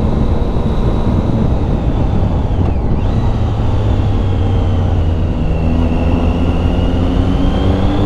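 A motorcycle engine hums steadily, rising and falling in pitch as the rider changes speed.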